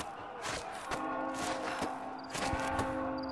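A body slides down a rope with a whirring hiss.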